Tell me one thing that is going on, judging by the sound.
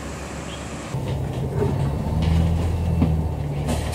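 Traffic rumbles on a nearby road.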